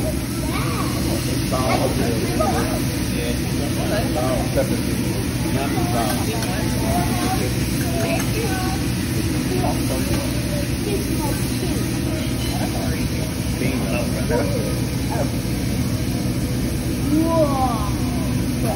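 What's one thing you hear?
Meat sizzles steadily on a hot griddle.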